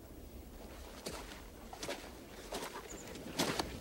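Boots thud on hard ground as a man walks at a steady pace.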